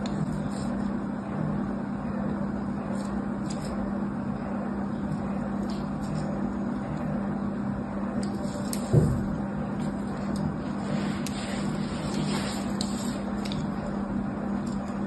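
A thin blade scratches and scrapes lines into a bar of soap, close up.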